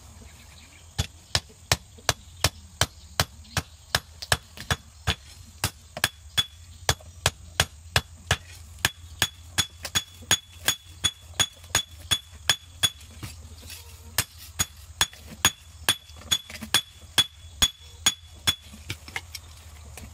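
A hammer rings sharply on hot metal in a fast, steady rhythm.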